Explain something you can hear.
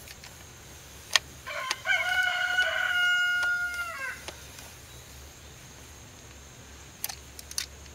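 A ratchet wrench clicks as it turns.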